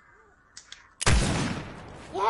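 A sniper rifle fires a single shot.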